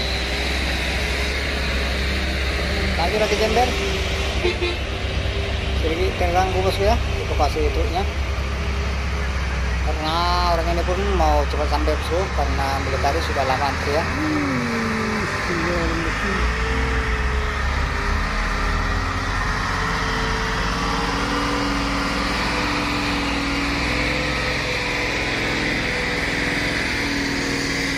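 A diesel truck engine rumbles and revs nearby.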